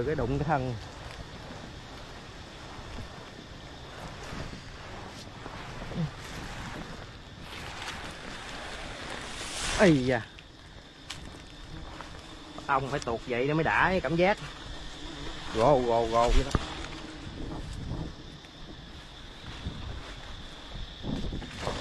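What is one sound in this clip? Footsteps crunch through dry leaves and palm fronds.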